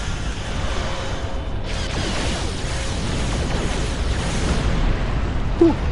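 A starship's weapons fire in rapid bursts.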